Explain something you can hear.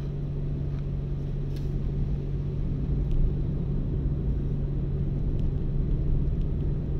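Tyres roll on a smooth road with a low rumble.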